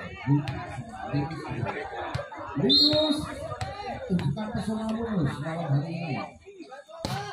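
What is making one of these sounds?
Spectators cheer and shout loudly outdoors.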